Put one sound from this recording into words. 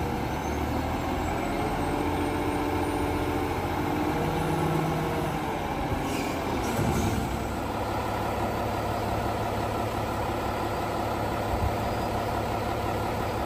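A diesel garbage truck engine idles.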